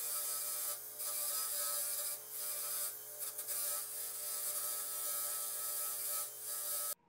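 A metal hook scrapes against a spinning buffing wheel with a harsh hiss.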